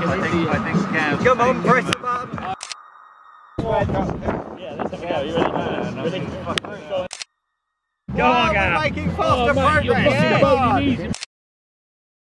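Young men shout and laugh close by.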